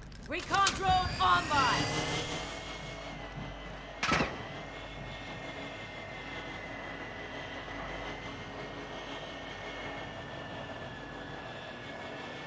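A drone's rotors hum steadily.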